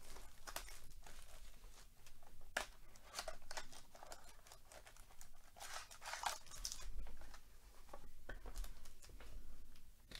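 A cardboard box is opened with soft scraping and tapping.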